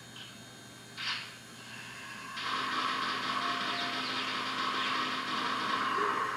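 Rapid video game gunfire blasts from a small television speaker.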